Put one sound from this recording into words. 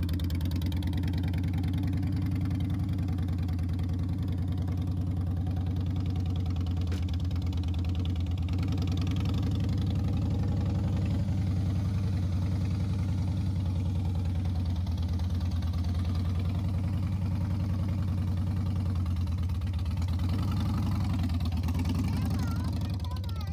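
A motorcycle engine idles with a deep, steady rumble.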